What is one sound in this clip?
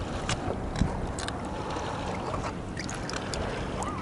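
Water splashes in a tub as a hand reaches in.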